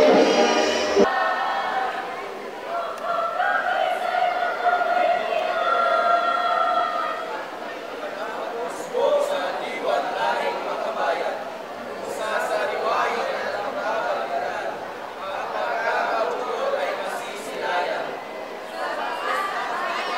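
A group of young men and women read aloud together in unison.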